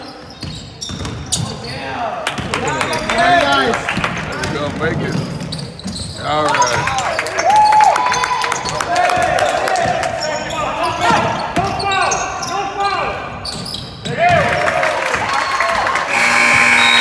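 Sneakers squeak sharply on a hard court floor in a large echoing hall.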